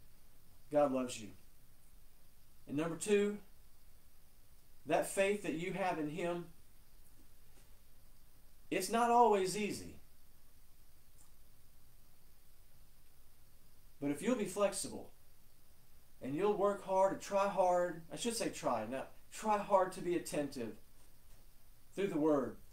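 A middle-aged man speaks calmly and clearly into a nearby microphone, pausing often.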